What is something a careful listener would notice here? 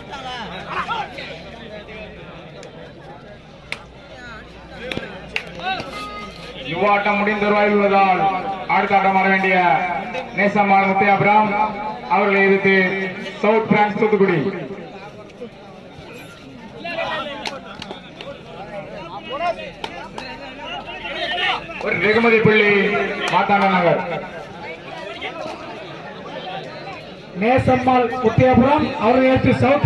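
A crowd murmurs and shouts outdoors.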